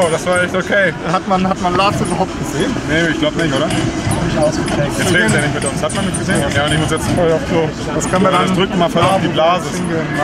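A second young man talks close by.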